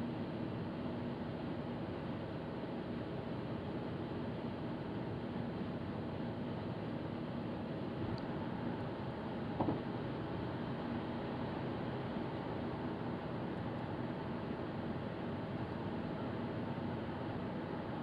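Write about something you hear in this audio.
A car's engine hums steadily from inside the car.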